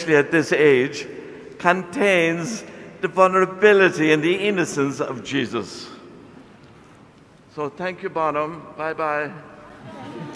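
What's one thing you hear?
An elderly man chants into a microphone in a large echoing hall.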